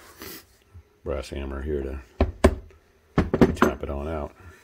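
A hammer taps on metal.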